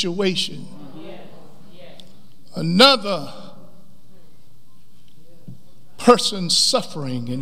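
A middle-aged man speaks slowly and with emphasis into a microphone, in a room with a slight echo.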